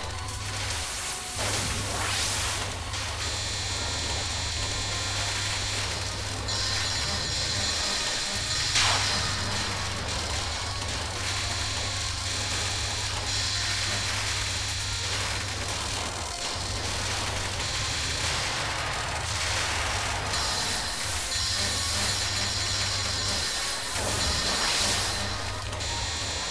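Rapid game shooting sounds crackle continuously.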